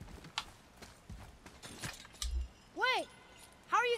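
A metal chain clinks and rattles.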